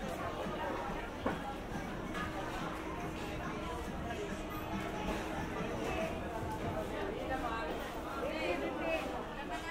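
Footsteps shuffle on a concrete floor.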